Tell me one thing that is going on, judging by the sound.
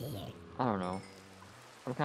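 A block cracks and crumbles as it is broken.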